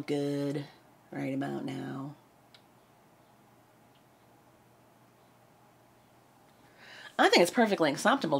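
A woman sings into a microphone in short phrases with pauses.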